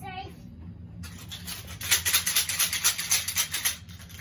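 A plastic toy clatters and rattles.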